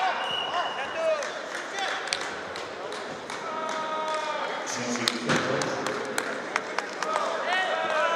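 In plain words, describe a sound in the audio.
Spectators clap in a large echoing hall.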